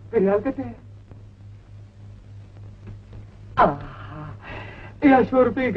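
A woman speaks in a high, animated voice.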